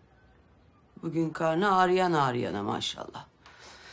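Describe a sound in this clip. A middle-aged woman speaks close by in a dry, exasperated tone.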